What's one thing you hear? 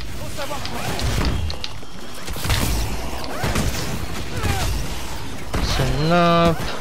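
Gunshots boom in short bursts.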